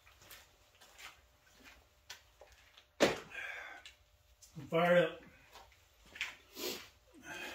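A man's footsteps scuff across a hard floor.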